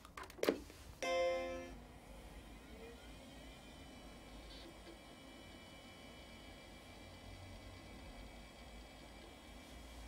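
A computer fan hums steadily.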